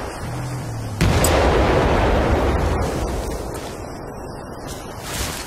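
An explosion booms nearby and rumbles away.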